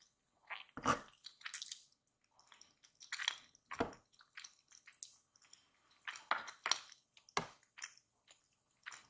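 A woman chews food wetly and close up.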